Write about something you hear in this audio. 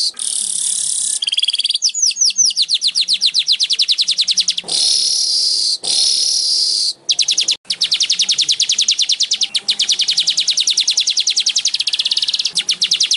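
A small bird sings close by in rapid, high, buzzing trills and chirps.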